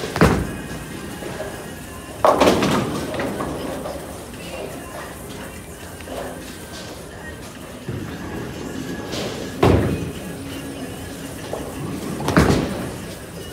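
A bowling ball thuds onto a wooden lane.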